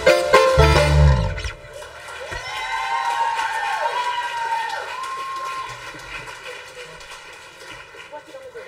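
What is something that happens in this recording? An electric guitar strums chords.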